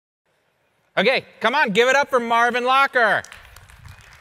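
A middle-aged man speaks into a microphone over a loudspeaker in a large hall.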